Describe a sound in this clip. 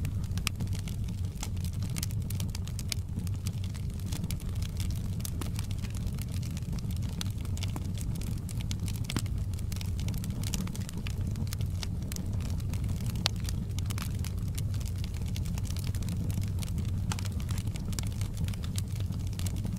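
A wood fire crackles and pops with frequent sharp snaps.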